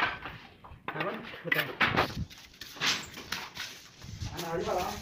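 Bricks knock softly as they are set down.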